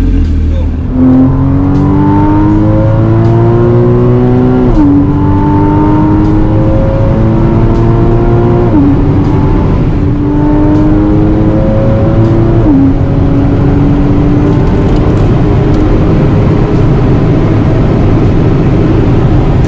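A sports car engine accelerates hard, its pitch climbing and dropping with each gear change.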